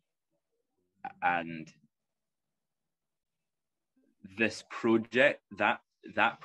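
A bearded man speaks with animation, close to a phone microphone.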